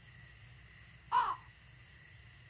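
A cat meows once.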